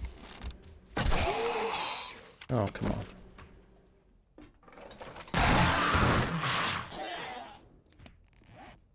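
A heavy wooden club swings and strikes a body with a dull thud.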